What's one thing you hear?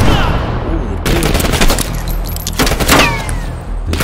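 A weapon is reloaded with a metallic clack.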